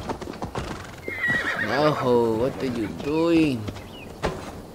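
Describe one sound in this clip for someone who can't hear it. A horse whinnies loudly nearby.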